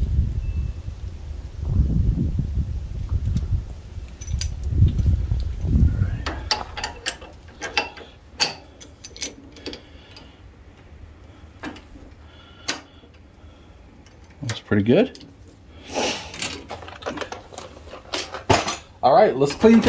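Metal hitch parts clink together.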